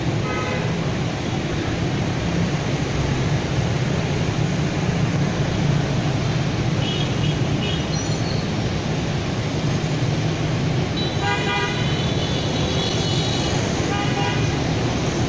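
Motorbike engines hum and buzz as they pass close by.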